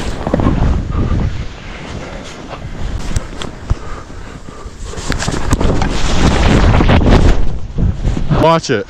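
Skis hiss and scrape through deep powder snow.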